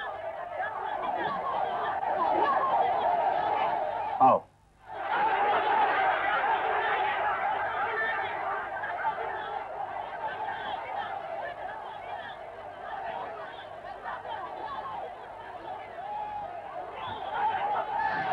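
A large crowd shouts and clamours outdoors.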